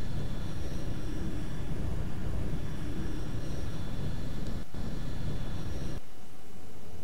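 A spaceship engine roars with a deep rumble.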